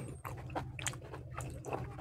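Sauce pours and splashes onto food.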